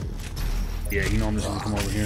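A monster roars close by.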